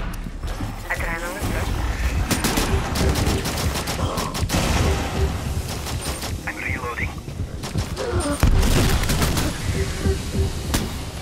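Gunshots fire in quick bursts.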